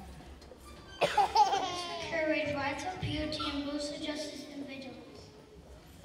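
A second young child speaks into a microphone in a large hall.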